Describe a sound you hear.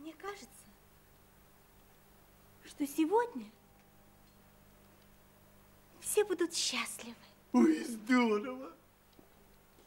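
A young woman speaks softly and playfully, close by.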